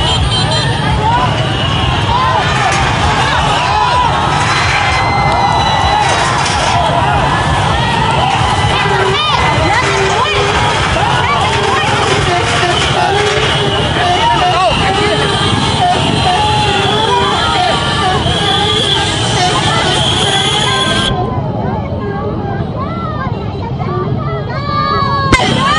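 A large crowd shouts and clamours outdoors close by.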